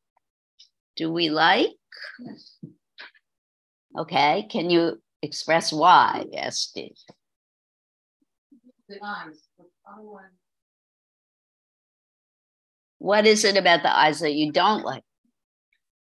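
A woman speaks calmly over an online call, with pauses.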